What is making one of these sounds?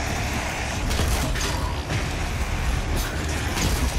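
Heavy gunfire blasts in rapid bursts.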